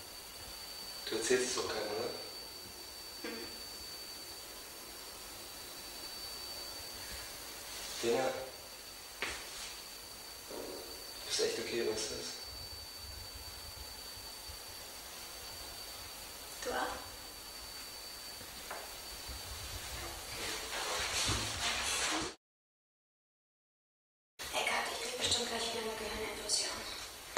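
A young man speaks briefly in short replies.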